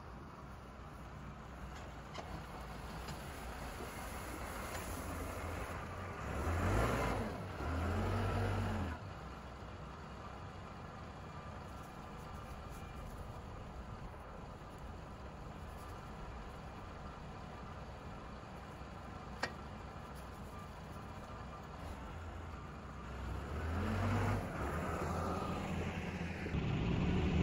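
A diesel tractor engine works under load.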